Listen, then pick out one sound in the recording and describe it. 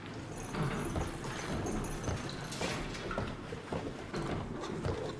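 Footsteps thud steadily on a wooden floor.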